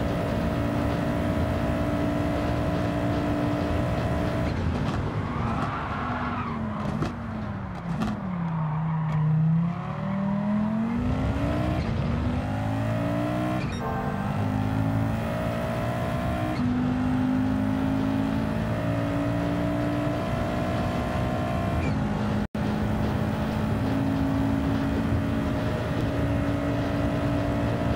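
A racing car engine roars at high revs, dropping in pitch as the car brakes and then climbing again through the gears.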